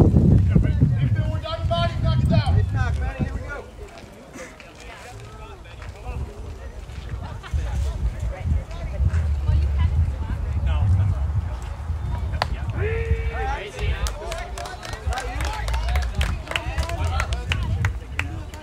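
Men's voices call out from a distance across an open field.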